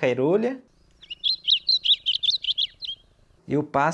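A small bird sings a quick, high, chirping song.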